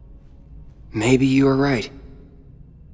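A young man answers quietly and thoughtfully.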